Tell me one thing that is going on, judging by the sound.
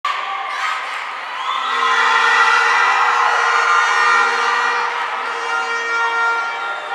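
A crowd cheers and screams in a large echoing hall.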